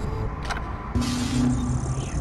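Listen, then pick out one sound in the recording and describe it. An electronic terminal chimes as it switches on.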